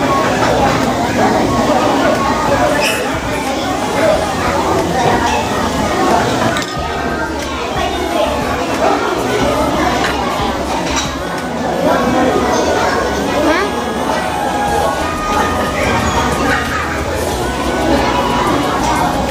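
A busy crowd chatters in the background.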